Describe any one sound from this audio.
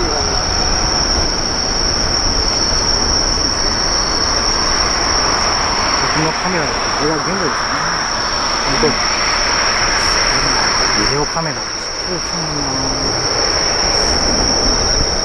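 A jet airliner's engines roar loudly and steadily.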